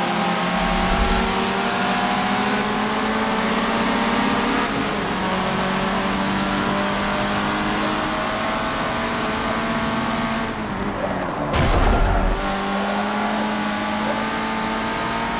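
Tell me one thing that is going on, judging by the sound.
A racing car engine revs high and roars steadily.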